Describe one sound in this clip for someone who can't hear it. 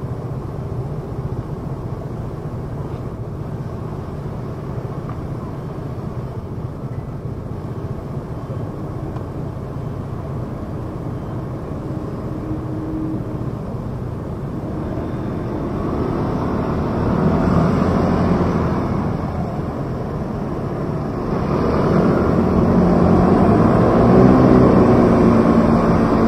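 Scooter engines idle and rumble nearby in street traffic.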